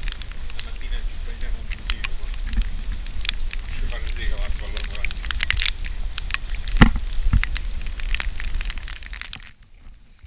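A young man talks close by over the wind.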